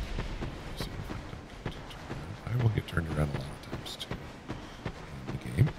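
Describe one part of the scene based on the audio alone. Footsteps crunch quickly over grass and leaves.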